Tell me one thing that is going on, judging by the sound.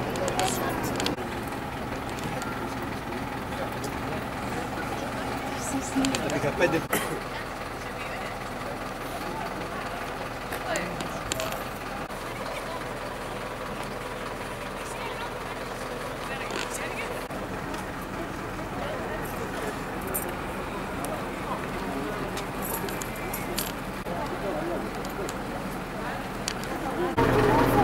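A crowd of men and women talk at a distance outdoors.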